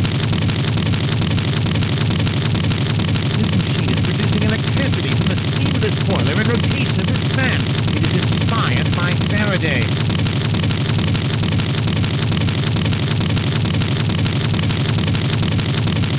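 A fire roars steadily in a furnace.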